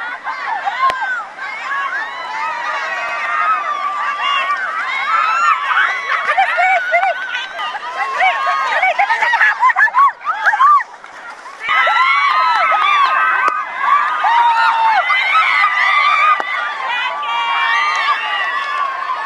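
A group of women shout and cheer excitedly nearby.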